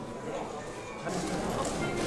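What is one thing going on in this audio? A crowd of adults murmurs and chatters nearby.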